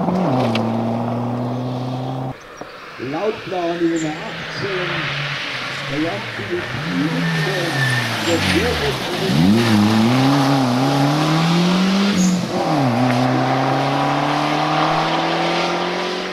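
A rally car engine roars and revs hard through the gears.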